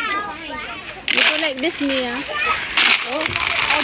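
Dry corn kernels rattle and patter as they are poured into a plastic toy truck.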